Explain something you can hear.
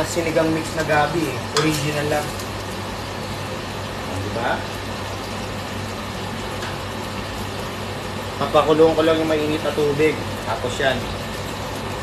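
A woman speaks casually close by.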